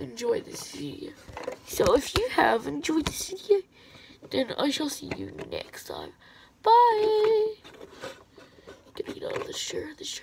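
Small plastic toys tap and knock together close by.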